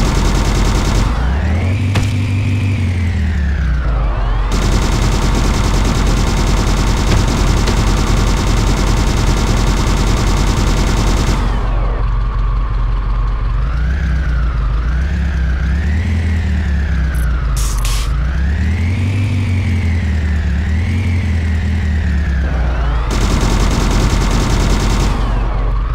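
A vehicle engine revs up and down, its pitch rising and falling.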